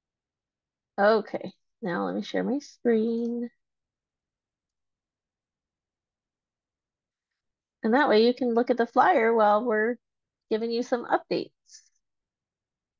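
A woman speaks calmly over an online call, in short bursts with pauses.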